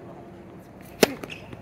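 A racket strikes a tennis ball with a sharp pop.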